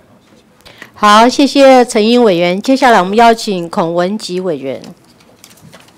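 A middle-aged woman speaks firmly into a microphone.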